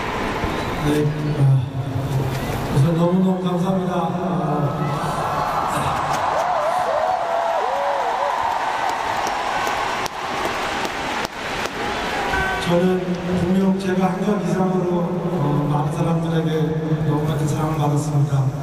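A man speaks into a microphone, heard over echoing stadium loudspeakers.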